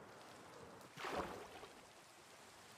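A splash sounds as something plunges into water.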